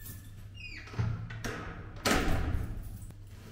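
A door clicks and thuds shut nearby.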